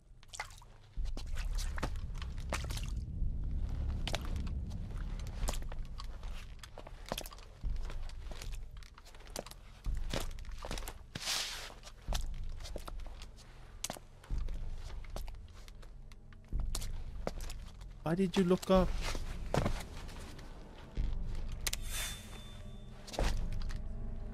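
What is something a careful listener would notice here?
Heavy boots thud on a hard floor.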